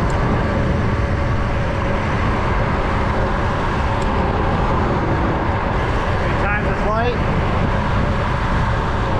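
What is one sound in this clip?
Tyres hum on smooth pavement.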